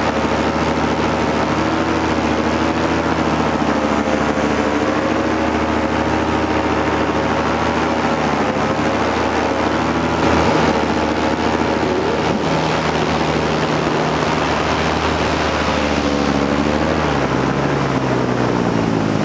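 A paramotor engine drones at steady throttle in flight.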